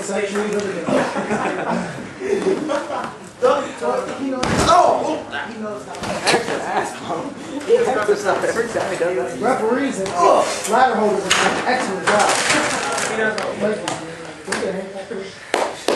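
Bodies thud onto a padded mat.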